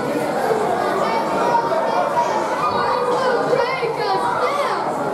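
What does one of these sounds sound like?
A crowd of men and women chatters and shouts in a large echoing hall.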